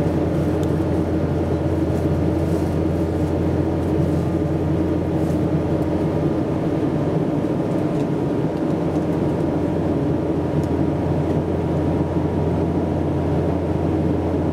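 Jet engines roar steadily inside an airliner cabin.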